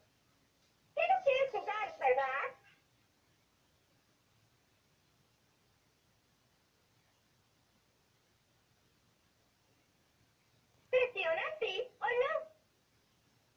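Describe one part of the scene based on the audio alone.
A talking toy doll speaks in a bright recorded voice through a small speaker, in two short bursts.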